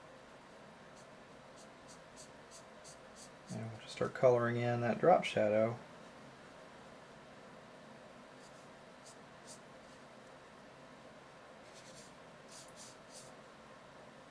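A felt-tip marker squeaks and scratches faintly on paper.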